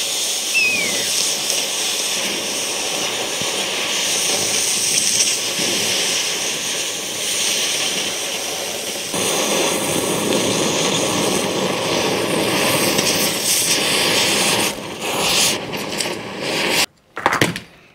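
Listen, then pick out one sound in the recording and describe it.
An electric welder crackles and hisses steadily.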